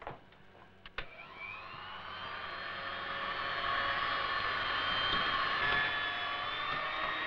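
An electric hand mixer whirs steadily, beating a mixture.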